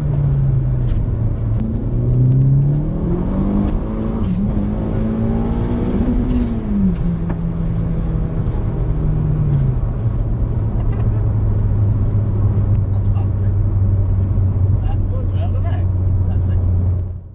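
A car engine hums and rises and falls in pitch as the car drives.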